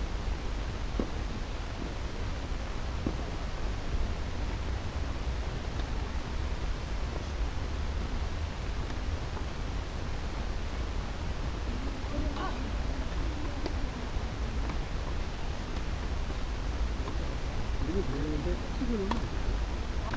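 Tennis rackets strike a ball back and forth outdoors.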